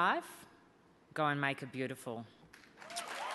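A woman speaks warmly into a microphone.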